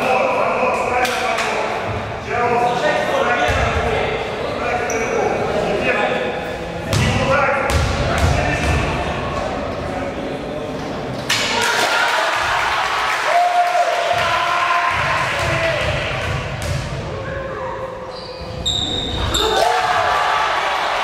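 Young people shout and chatter in a large echoing gym.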